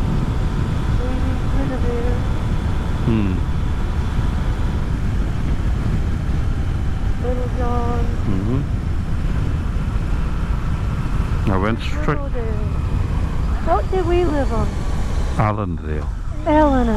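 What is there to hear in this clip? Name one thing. A man speaks calmly through a helmet microphone.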